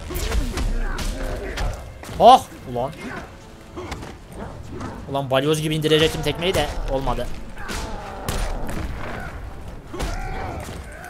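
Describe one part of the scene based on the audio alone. Punches and kicks thud and smack in a fighting game.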